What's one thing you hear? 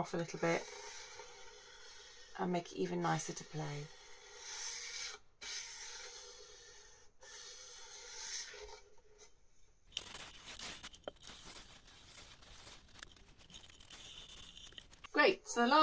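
A scraper scrapes along the edge of a violin.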